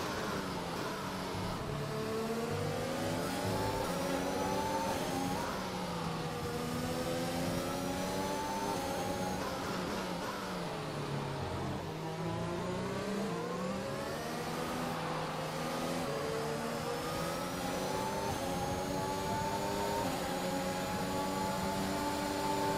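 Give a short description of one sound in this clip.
A racing car engine screams loudly, rising in pitch as it speeds up and dropping as it shifts gear and brakes.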